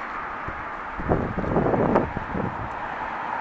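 Dry leaves rustle as a small bird hops and pecks through them.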